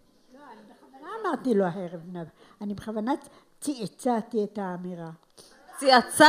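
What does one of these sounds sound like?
An elderly woman speaks slowly through a microphone.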